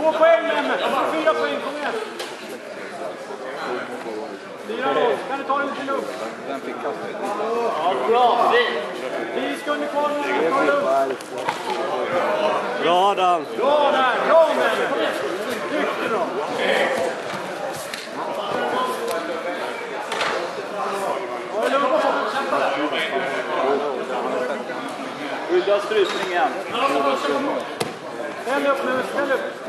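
A crowd of men and women chatter and call out in a large echoing hall.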